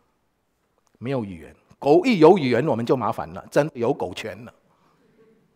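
An elderly man speaks with emphasis into a microphone.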